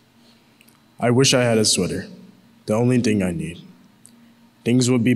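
A young man reads aloud calmly into a microphone, heard through loudspeakers in a large echoing hall.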